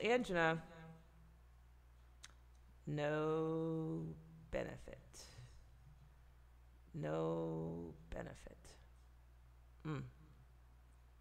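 A middle-aged woman speaks calmly into a close microphone, in short drawn-out phrases with pauses.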